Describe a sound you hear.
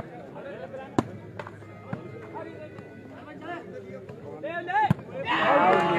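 A ball is struck by hand with a sharp slap.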